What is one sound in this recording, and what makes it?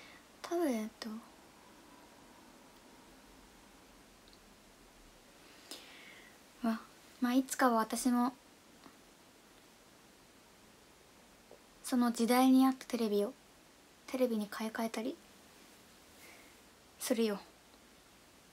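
A young woman speaks softly and calmly in short bursts, close to a microphone.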